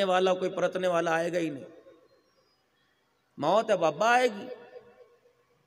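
A man chants in a melodic voice through a microphone.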